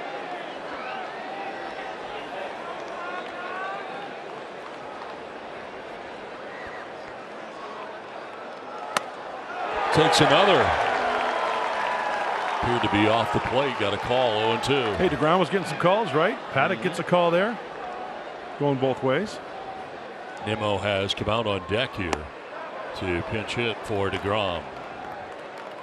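A large crowd murmurs in an open stadium.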